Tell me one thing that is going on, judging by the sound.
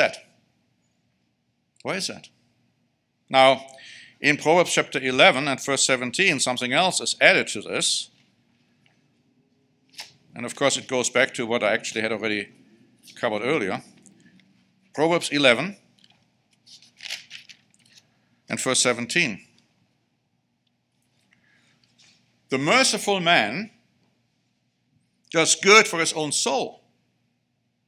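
A middle-aged man speaks calmly and slowly through a microphone, with pauses.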